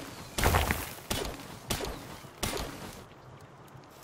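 A stone axe strikes a rock with sharp cracking blows.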